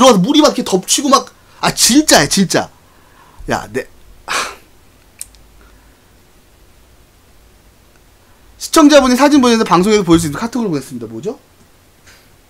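A young man talks with animation into a close microphone, pausing between bursts.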